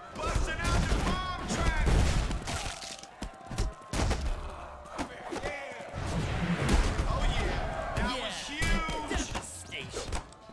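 Punches and kicks thud in a video game fight.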